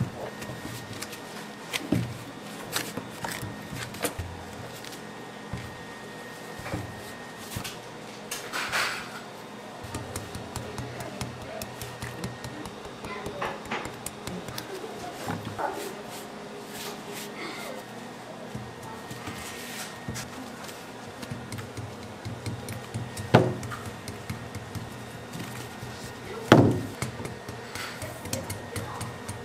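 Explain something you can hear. Gloved hands press and pat soft candy dough on a table with soft knocks.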